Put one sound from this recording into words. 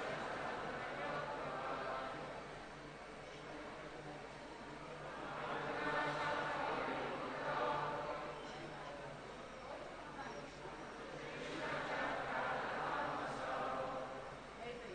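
A large crowd of men and women chants together in waves in a large echoing hall.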